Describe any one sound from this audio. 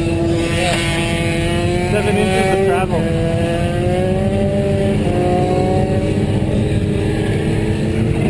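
Motorcycle engines idle and rumble close by.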